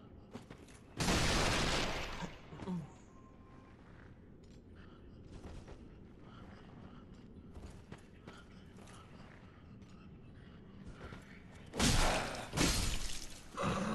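A heavy blade swings with a loud whoosh.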